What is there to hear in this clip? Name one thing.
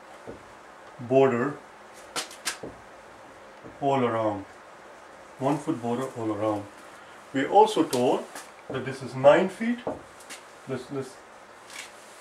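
A middle-aged man speaks calmly, as if explaining a lesson, close by.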